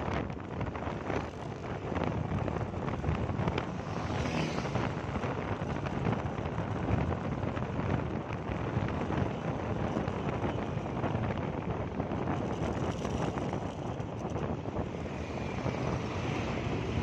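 Nearby traffic rumbles past.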